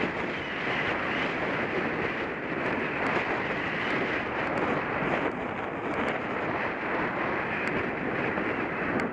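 Wind buffets a microphone outdoors, steady and loud.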